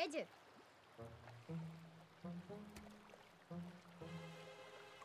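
A young boy speaks calmly nearby.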